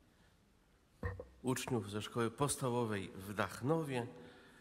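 A man reads out calmly through a microphone.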